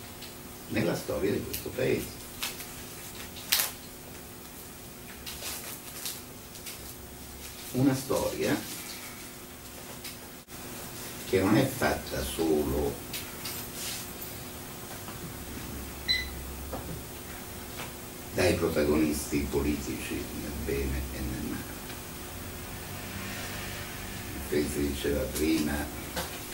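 A middle-aged man speaks calmly in bursts, heard close in a small quiet room.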